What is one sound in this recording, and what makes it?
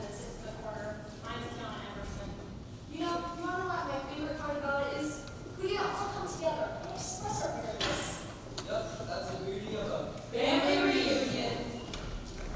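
Teenage girls and boys talk and call out with animation in an echoing hall.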